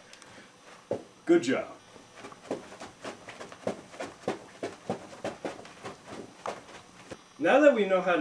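Shoes tap and shuffle on the floor.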